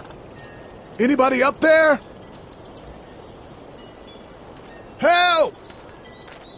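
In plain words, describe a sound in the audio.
A man calls out loudly, close by.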